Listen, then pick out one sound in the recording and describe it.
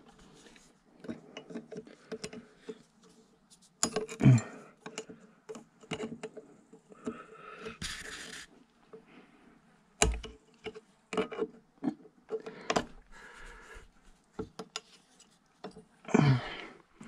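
Pliers click and scrape against metal parts.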